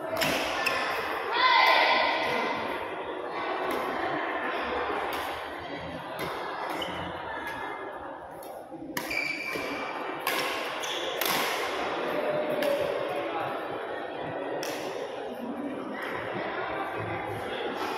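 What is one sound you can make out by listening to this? Shuttlecocks are hit with sharp taps of rackets in a large echoing hall.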